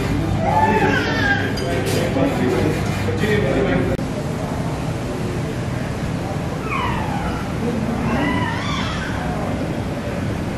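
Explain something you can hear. Men talk in a room.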